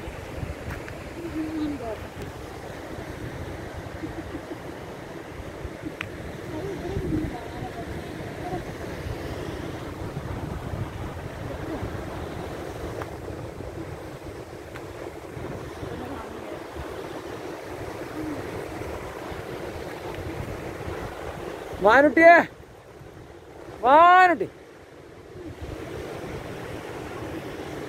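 Waves wash steadily against rocks along the shore.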